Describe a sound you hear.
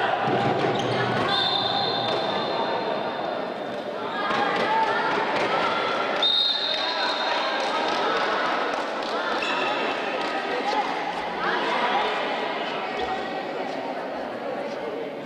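A crowd of spectators chatters and cheers throughout, echoing in a large hall.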